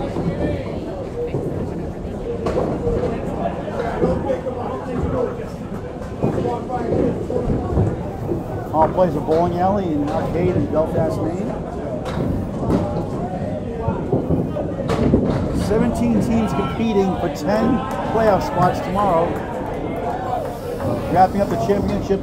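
A crowd of adults chatters nearby in a large echoing hall.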